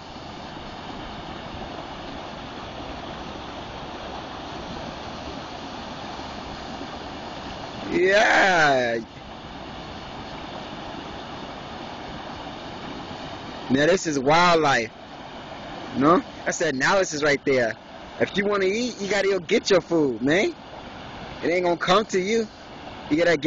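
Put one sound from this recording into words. Water rushes and splashes steadily over a low weir outdoors.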